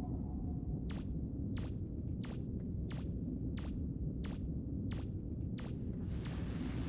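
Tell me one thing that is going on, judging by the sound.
Footsteps tap in a quick, even rhythm.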